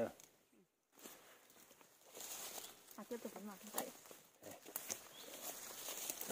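Dry leaves and brush rustle as someone moves through undergrowth.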